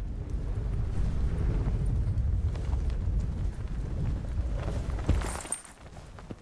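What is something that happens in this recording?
Wind rushes loudly past a gliding wingsuit.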